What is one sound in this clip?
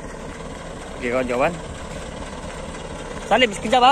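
A heavy truck engine rumbles as the truck drives slowly closer.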